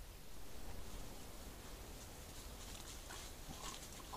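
A wild boar laps water softly.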